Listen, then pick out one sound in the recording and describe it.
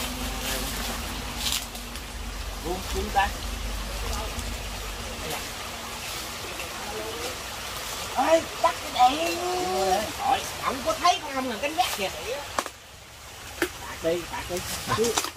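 Leaves and branches rustle as men climb through dense plants.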